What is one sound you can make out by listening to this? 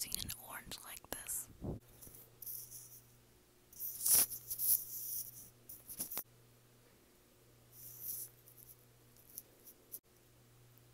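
Orange peel tears and crackles close to a microphone.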